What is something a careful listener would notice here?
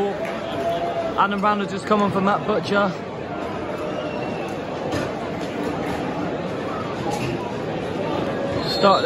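A large outdoor crowd murmurs steadily.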